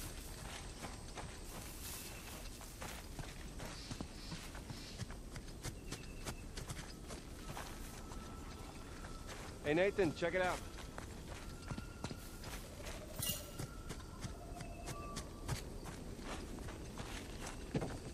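Footsteps patter quickly over grass and stone.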